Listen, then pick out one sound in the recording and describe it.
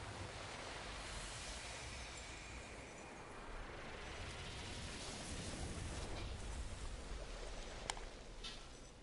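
A magical burst swells with a rushing whoosh.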